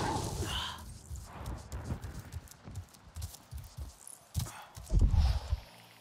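Footsteps tread softly and steadily over soft ground.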